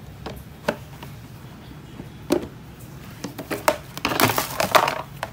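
Plastic sheeting crinkles and rustles under a hand.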